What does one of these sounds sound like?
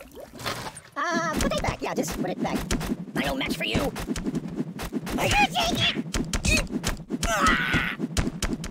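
A ragdoll squeaks and groans with each hit.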